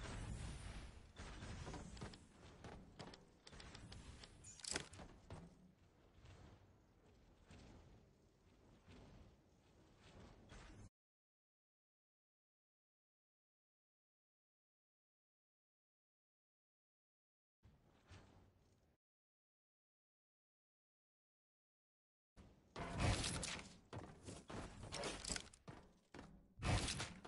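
Video game sound effects clatter and whoosh.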